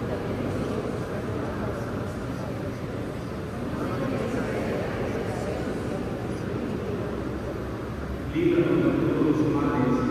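A man chants steadily through a loudspeaker in a large echoing hall.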